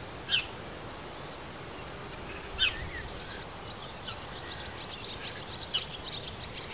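Small birds chirp and twitter close by, outdoors.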